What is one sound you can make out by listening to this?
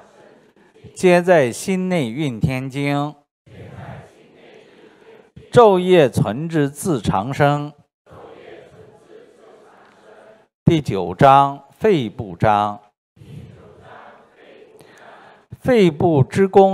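A middle-aged man chants a text aloud through a microphone, in long phrases with pauses between them.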